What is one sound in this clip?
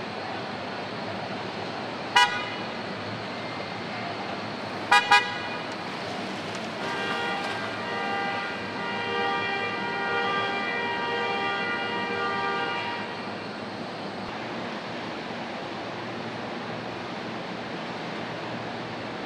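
Machinery hums steadily in a large echoing hall.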